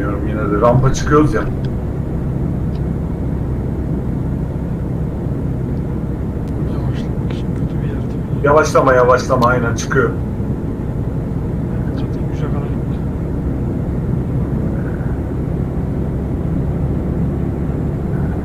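A truck engine drones steadily at speed.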